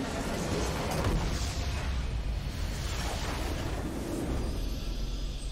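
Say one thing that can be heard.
A game structure explodes with a loud rumbling blast.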